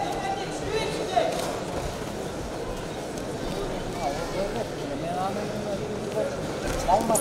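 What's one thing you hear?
Spectators shout out loudly now and then.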